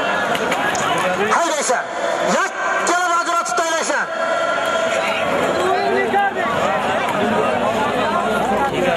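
A large crowd of men shouts and calls out outdoors.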